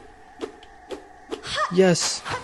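Quick blade slashes swish in rapid succession.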